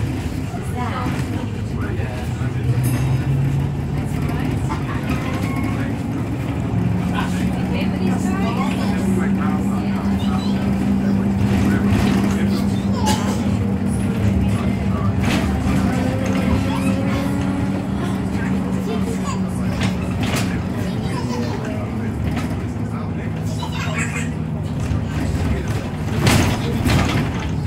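A bus body rattles and clatters over the road.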